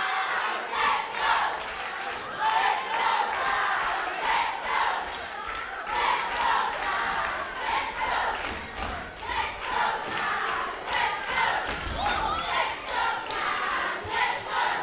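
A crowd cheers and chants loudly in a large echoing hall.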